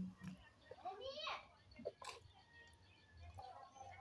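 A woman gulps down a drink.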